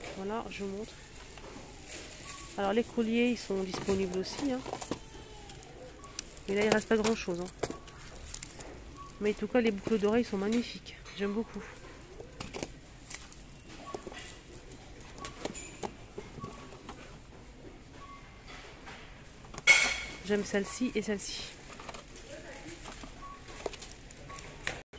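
Plastic-wrapped boxes rustle and tap as a hand picks them up and puts them back.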